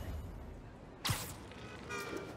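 A rope-like line zips and whooshes through the air.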